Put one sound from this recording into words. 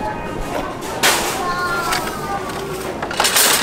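Metal shopping carts rattle and clank together.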